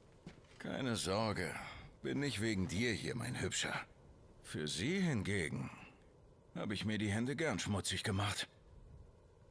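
A man speaks calmly and mockingly, close by.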